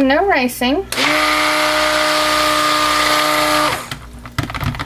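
A stick blender whirs steadily in liquid.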